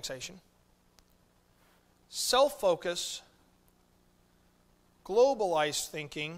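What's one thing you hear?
A middle-aged man speaks emphatically into a microphone, with pauses between phrases.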